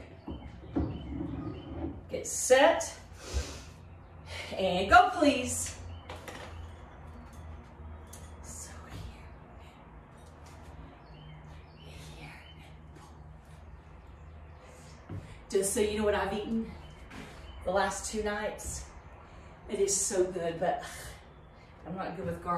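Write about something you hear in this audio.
A woman talks to the listener with energy, close by.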